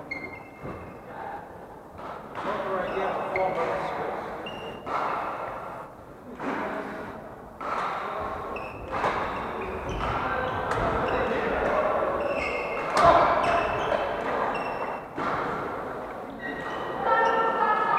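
Shoes squeak on the wooden court.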